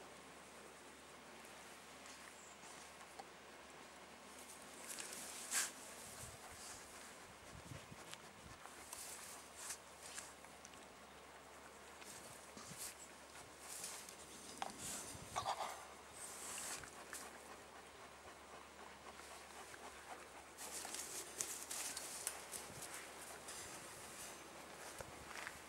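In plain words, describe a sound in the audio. A sheep crops and chews grass close by.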